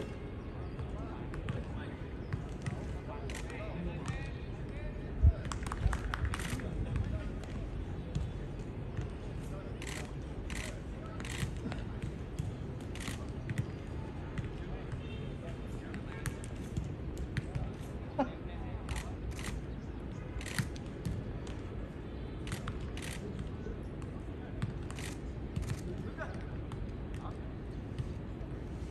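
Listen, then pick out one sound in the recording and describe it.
Footballs are kicked with dull thumps.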